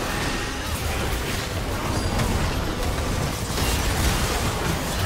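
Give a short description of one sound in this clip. Game spell effects whoosh and crackle in a fight.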